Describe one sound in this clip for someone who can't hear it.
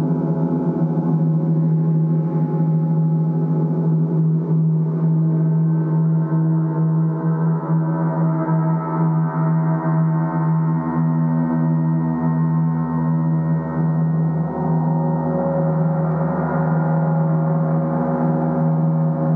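A mallet rubs and strikes gongs, making the sound swell and ring.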